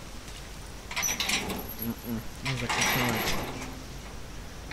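A metal chain rattles against a gate.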